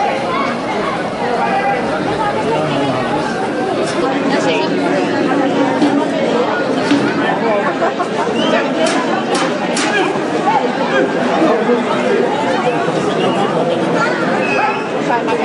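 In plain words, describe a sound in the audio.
Metal railings clang as people climb onto them.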